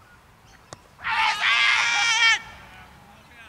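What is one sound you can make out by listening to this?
Men shout loudly together across an open field.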